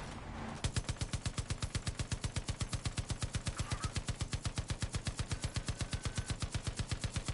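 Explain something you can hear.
A mounted machine gun fires in a rapid, steady burst.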